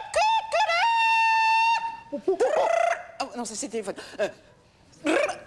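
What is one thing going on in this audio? A woman speaks with animation on a stage.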